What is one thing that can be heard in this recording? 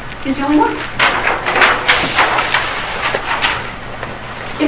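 Paper sheets rustle as a large pad is flipped.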